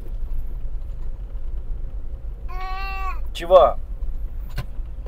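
A car engine hums low and steady while driving.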